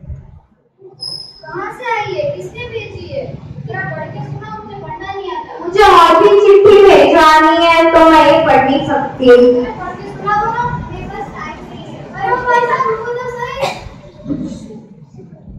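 A girl speaks loudly into a microphone through loudspeakers in an echoing hall.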